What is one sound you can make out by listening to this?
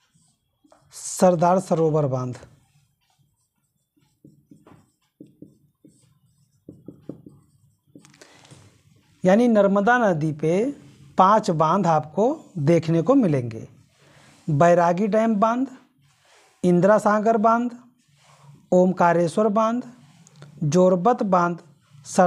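A man speaks clearly and steadily, close by.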